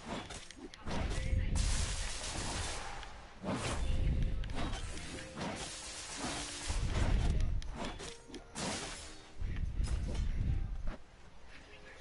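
Sword blows whoosh and clash in a video game fight.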